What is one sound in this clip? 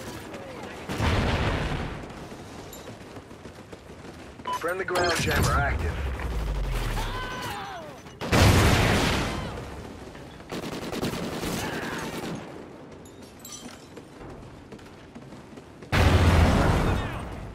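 Automatic gunfire rattles in loud bursts.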